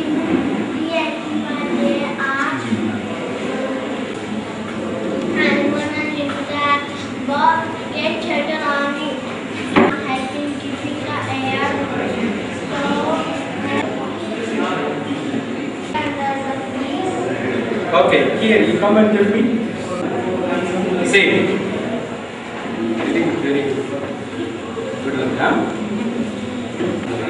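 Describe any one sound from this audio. A murmur of several adult voices fills the room.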